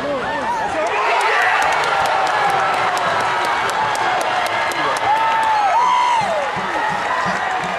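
A stadium crowd's cheering swells loudly.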